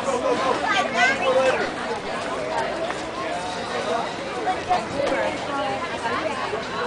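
A man talks with a child close by, outdoors.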